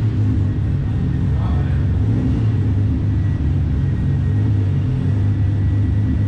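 A car engine idles loudly with a deep, rumbling burble.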